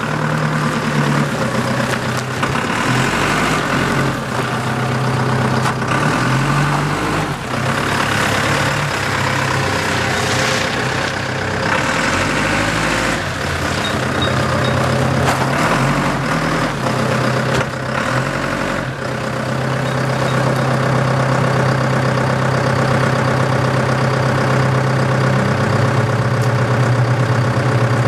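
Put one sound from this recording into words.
A forklift's diesel engine rumbles and revs close by.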